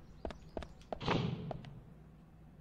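A door bangs open.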